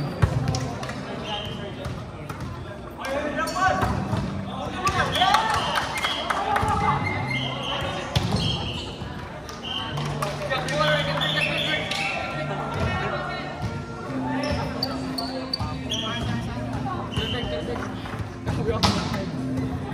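A volleyball thumps off hands and the floor.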